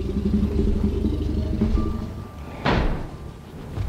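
A heavy metal gate rumbles and clanks open.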